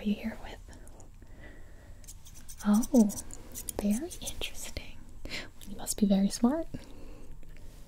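A young woman speaks softly close to the microphone.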